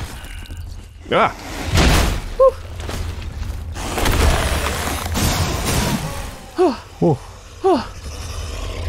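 A creature screeches and snarls.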